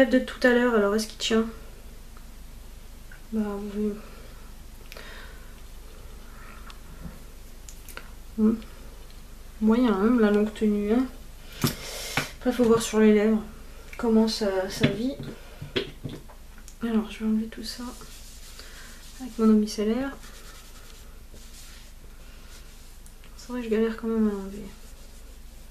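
A young woman speaks calmly and close by, in short phrases with pauses.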